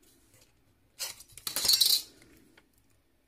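A metal ruler slides across a table.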